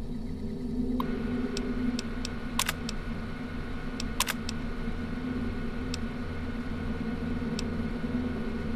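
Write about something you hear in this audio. A computer terminal clicks and beeps as keys are pressed.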